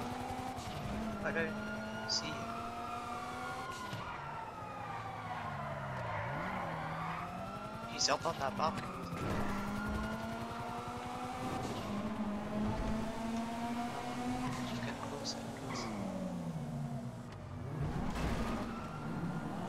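A car engine roars steadily, its pitch rising and falling as the car speeds up and slows.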